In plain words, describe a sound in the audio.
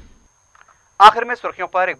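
A man speaks calmly and clearly into a microphone.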